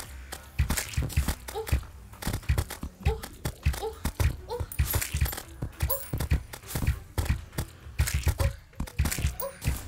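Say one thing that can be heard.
Game weapons strike enemies with rapid, repeated thuds and hits.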